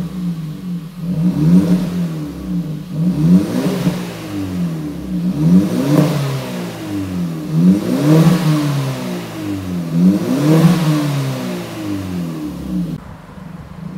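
A car engine revs repeatedly through a loud exhaust, rising and falling in pitch.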